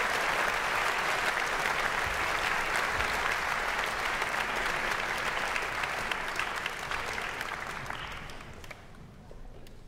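An audience applauds in a large hall, and the applause dies away.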